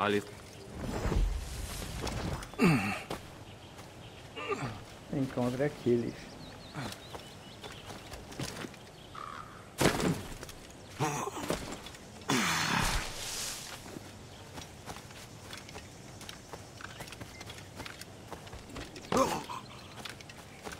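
A middle-aged man talks into a microphone in short bursts.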